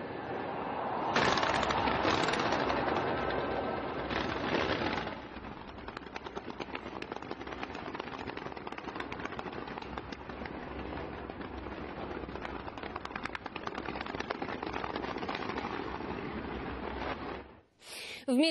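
Fireworks crackle and pop rapidly.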